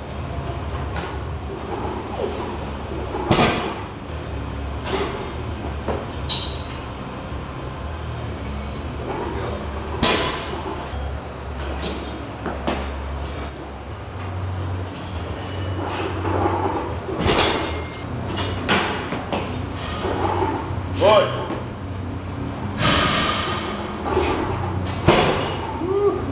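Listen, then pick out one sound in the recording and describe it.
Heavy weight plates clank and thud.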